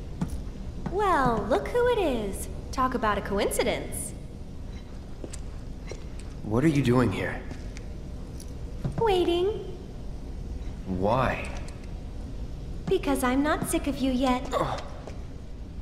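A young woman speaks playfully and cheerfully, close by.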